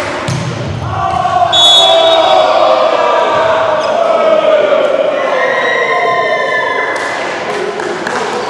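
Young men shout and cheer loudly in celebration.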